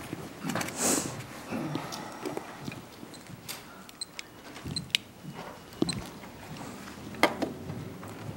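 Papers rustle and objects clack on desks.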